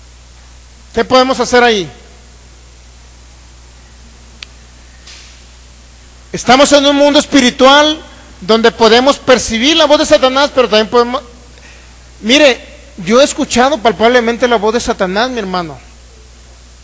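A man sings with feeling through a microphone and loudspeakers in a room with some echo.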